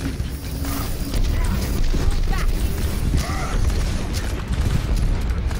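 A heavy gun fires in rapid bursts with booming blasts.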